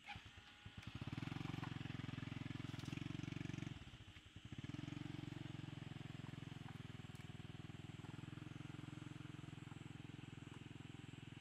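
A small step-through motorbike pulls away and rides off.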